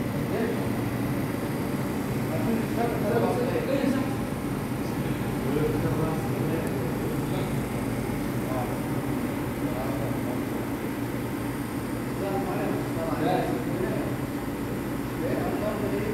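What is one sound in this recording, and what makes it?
Coffee trickles into a cup.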